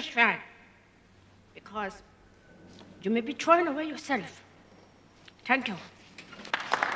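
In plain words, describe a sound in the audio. An elderly woman speaks with emotion into a microphone, in short bursts.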